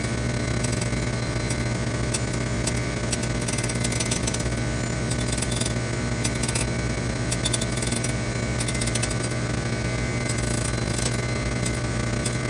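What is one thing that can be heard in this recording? A grinding wheel hums steadily as it spins.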